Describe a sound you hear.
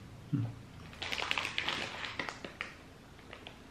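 A plastic snack bag crinkles and rustles close by.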